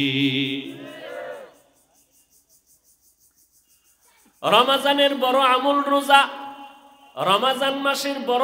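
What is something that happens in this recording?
A young man preaches with animation into a microphone, heard through loudspeakers with echo.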